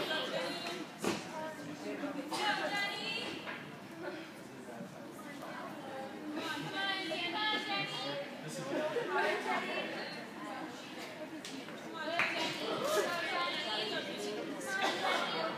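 Bare feet land with thuds on a balance beam.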